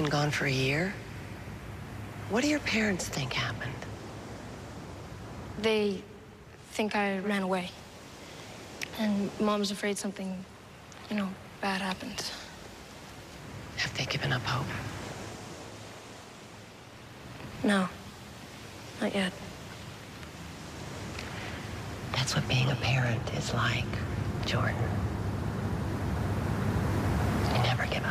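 A woman talks earnestly, close by.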